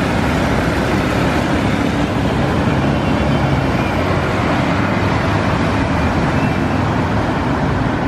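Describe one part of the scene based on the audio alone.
A diesel articulated city bus pulls away and drives past.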